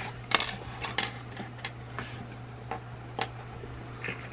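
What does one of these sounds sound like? Small plastic toy pieces click and tap onto a hard tabletop.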